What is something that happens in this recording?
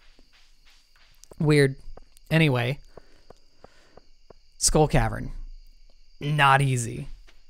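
Soft footsteps tap quickly along a path.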